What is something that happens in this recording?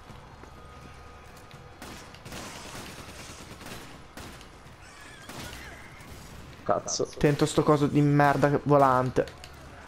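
Gunshots crack in short bursts.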